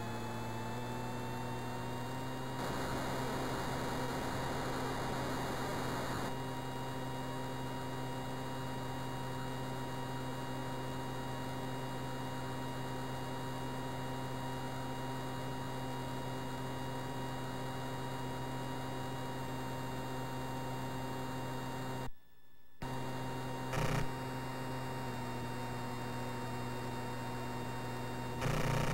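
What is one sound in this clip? A jet engine hums steadily in an electronic game tone.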